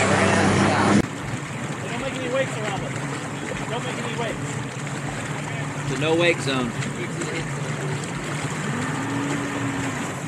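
A boat engine idles with a low steady hum.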